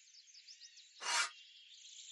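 A metal pin slides out with a quick swish.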